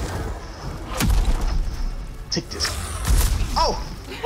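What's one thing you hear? Heavy blows land with deep booming thuds.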